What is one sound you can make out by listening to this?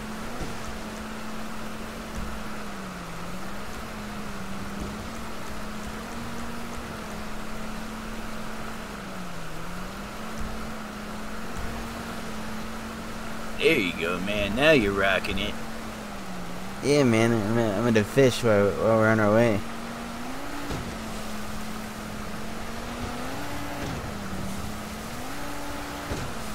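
Water rushes and splashes against a speeding boat's hull.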